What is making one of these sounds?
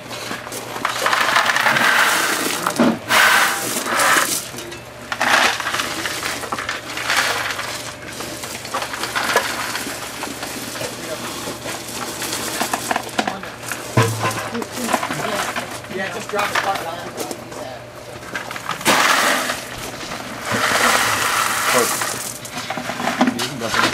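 Gravel pours out of a bucket and rattles onto a bed of stones.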